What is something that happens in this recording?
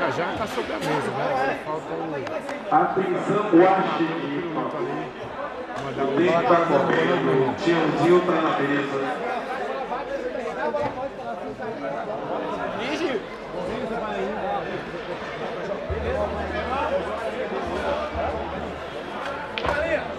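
A crowd of men chatter and talk loudly nearby.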